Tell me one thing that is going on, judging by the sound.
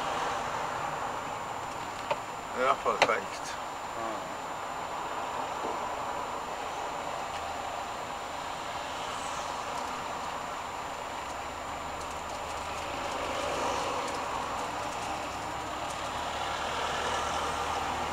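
A motorhome drives along a motorway, with engine and road noise heard from inside the cab.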